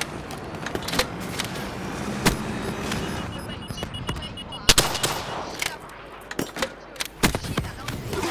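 Heavy guns fire in loud bursts and booms.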